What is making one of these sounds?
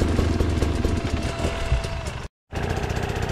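A second motorbike engine drones nearby as a rider climbs a trail.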